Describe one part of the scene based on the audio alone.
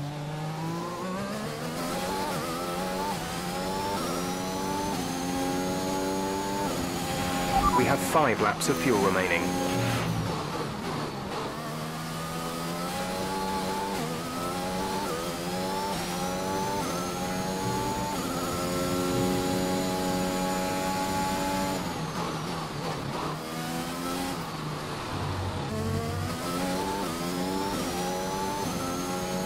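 A racing car engine screams, rising in pitch through each gear and dropping on each shift.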